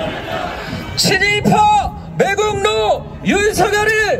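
A man shouts loudly through loudspeakers on a street.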